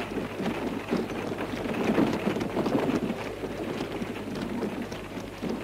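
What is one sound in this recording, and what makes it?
Wooden wagon wheels rumble and creak.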